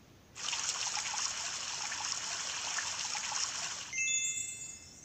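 Water sprays and splashes steadily.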